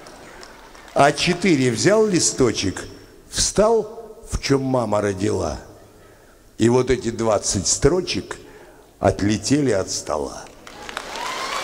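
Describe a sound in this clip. An elderly man speaks with feeling into a microphone, heard through loudspeakers in a large hall.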